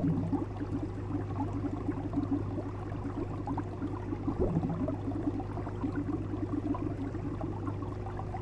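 Water gurgles and bubbles steadily in a fish tank.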